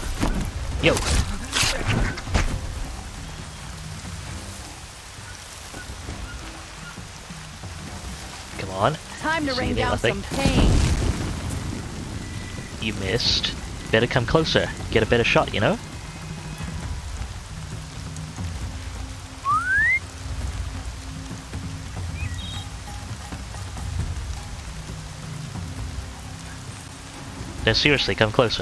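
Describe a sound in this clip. Tall grass rustles as someone creeps through it.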